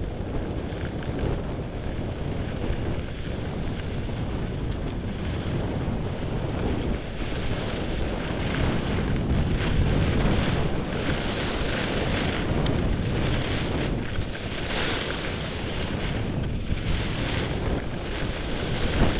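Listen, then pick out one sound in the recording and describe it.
Wind rushes loudly and steadily, close up.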